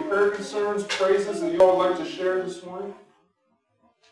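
A man speaks calmly through a microphone in a room with some echo.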